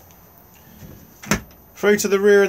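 A door handle clicks.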